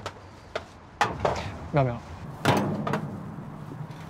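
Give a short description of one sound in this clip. A metal ladle clinks against a metal food tray.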